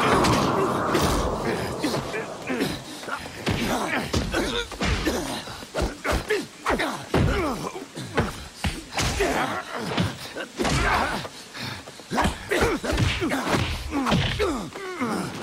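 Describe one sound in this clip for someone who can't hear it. Fists and kicks thud in quick blows during a fight.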